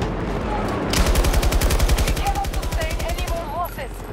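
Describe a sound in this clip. A rifle fires rapid bursts up close.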